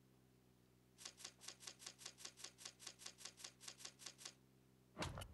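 A game counter ticks rapidly as a bar fills up.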